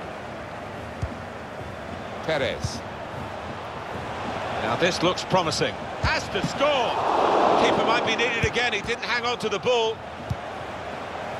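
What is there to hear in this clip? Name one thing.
A football is kicked with short dull thumps.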